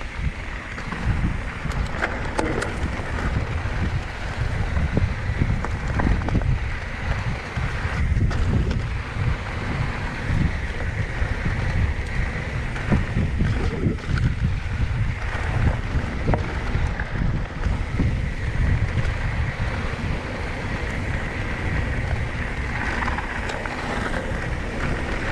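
A bicycle rattles and clunks over bumps.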